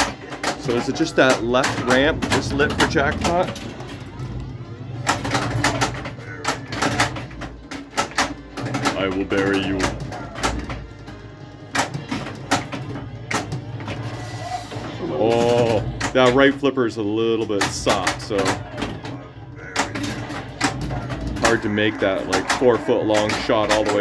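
A pinball machine calls out in a recorded voice through its speaker.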